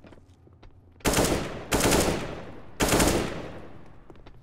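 A rifle fires several loud, sharp shots in quick bursts.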